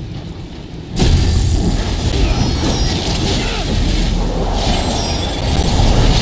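Fire crackles and roars loudly.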